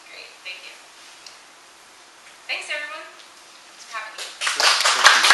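A young woman speaks to a room.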